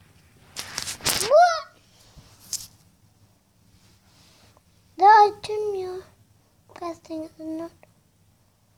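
A young girl speaks and exclaims close to a microphone.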